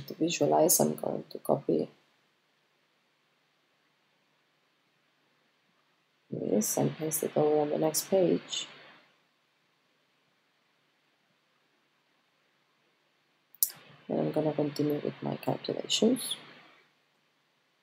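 A woman speaks calmly and close to a microphone, in short bursts with pauses.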